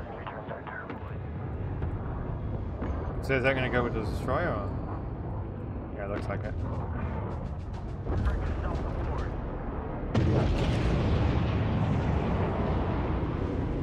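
Deep explosions rumble steadily.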